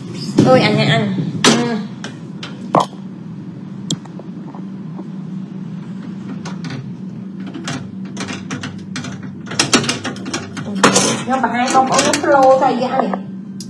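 A young woman talks close to a phone's microphone with animation.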